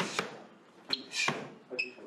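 Punches thud against pads.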